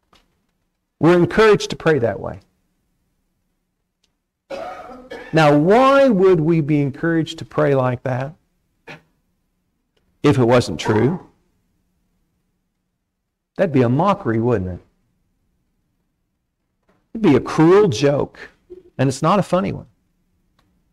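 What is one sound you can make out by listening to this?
A man speaks calmly through a microphone, in phrases broken by pauses.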